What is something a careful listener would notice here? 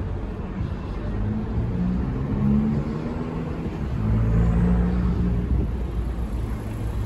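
A car engine passes close by, rising and fading.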